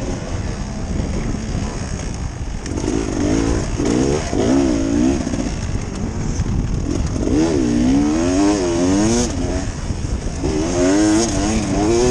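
A dirt bike engine revs up and down as the bike rides along.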